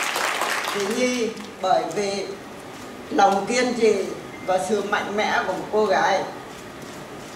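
An elderly woman speaks into a microphone over loudspeakers.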